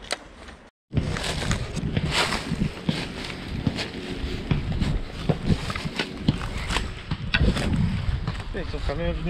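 Dry leaves and brush rustle and crunch underfoot.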